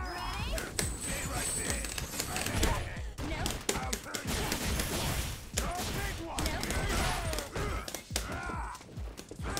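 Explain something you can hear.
Punches and kicks thud and smack in a fighting game.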